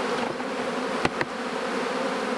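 A wooden hive frame knocks and scrapes as it is lifted out.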